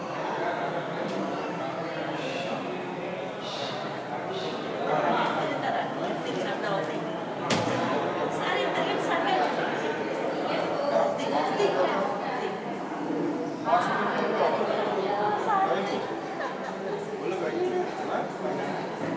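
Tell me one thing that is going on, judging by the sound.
A crowd of men and women chatter nearby in an echoing room.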